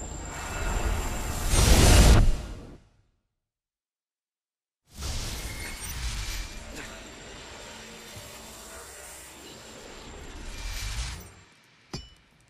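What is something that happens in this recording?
A bright rushing roar of energy swells and surges loudly, then cuts off.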